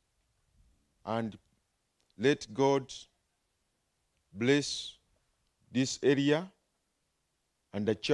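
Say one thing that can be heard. An elderly man speaks slowly and solemnly through a microphone and loudspeakers, pausing between phrases.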